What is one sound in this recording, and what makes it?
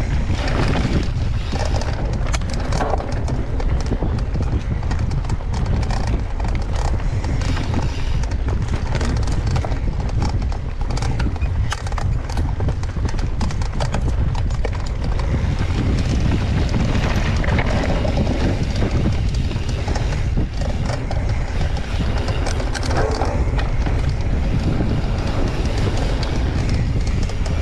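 Mountain bike tyres crunch over a dirt trail.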